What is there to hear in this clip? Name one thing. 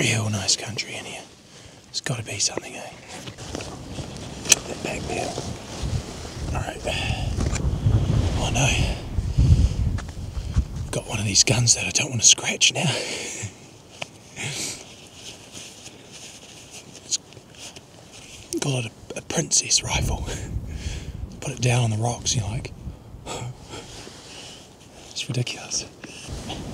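A young man speaks quietly and close to the microphone.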